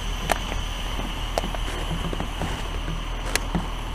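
A plastic bottle crinkles as it is dropped into a bin.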